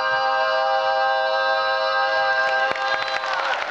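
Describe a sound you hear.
A group of men sing together in close harmony.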